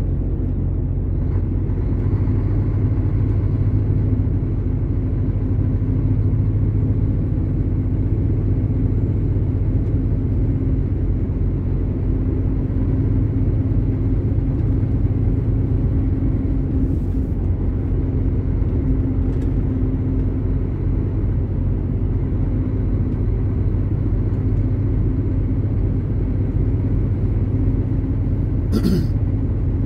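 Tyres hum steadily on the road.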